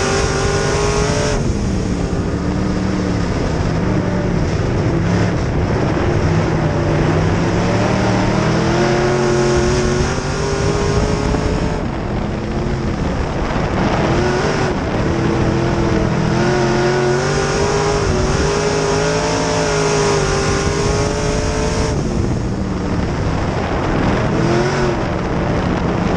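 Tyres rumble and spray dirt on a loose track.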